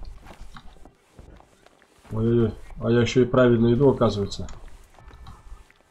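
Boots shuffle and step on wooden boards.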